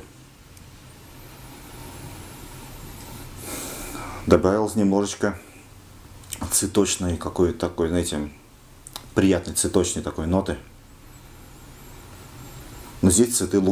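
A man sniffs deeply.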